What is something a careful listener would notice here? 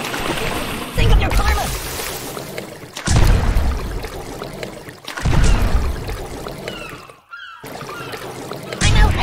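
Explosives go off in a series of deep, booming blasts.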